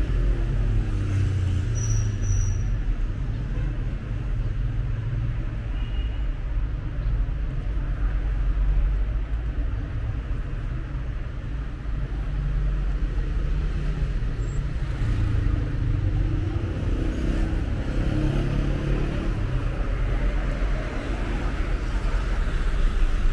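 Traffic rumbles steadily on a nearby street.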